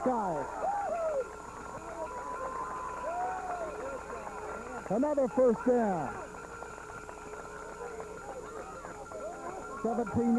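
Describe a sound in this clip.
A crowd cheers and yells in the distance outdoors.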